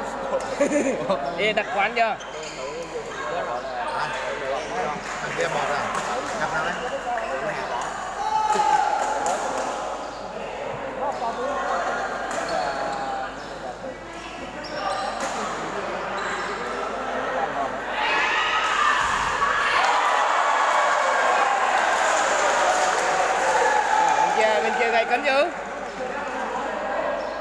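Players' shoes squeak and thud on a hard court floor.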